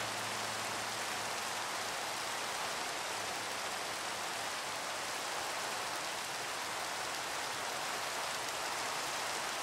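Steady rain pours down with a constant hiss.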